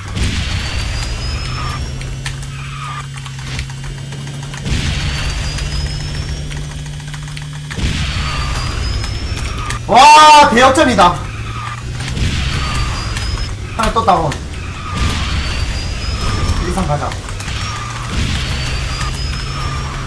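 A racing game's engine hums steadily.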